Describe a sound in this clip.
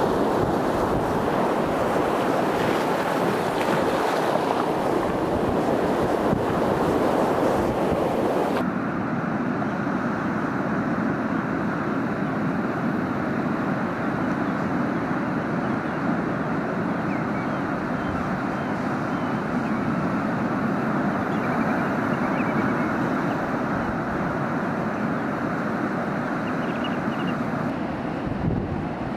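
Waves crash and wash over rocks close by, outdoors in wind.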